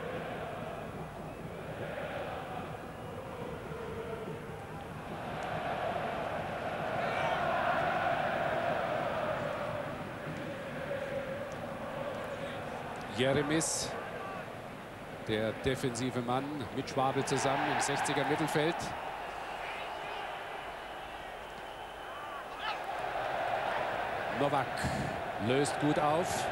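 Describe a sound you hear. A large stadium crowd roars and chants steadily, swelling at times.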